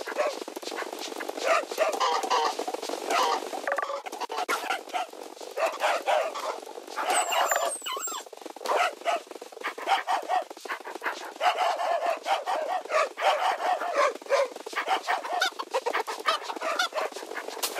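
Chickens cluck.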